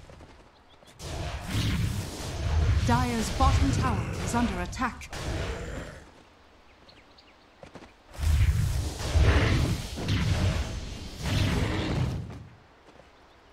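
Magic blasts and weapon hits clash in a fast battle.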